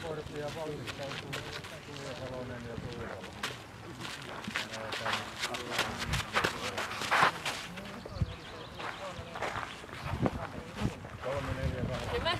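Several adults chat and call out nearby, outdoors.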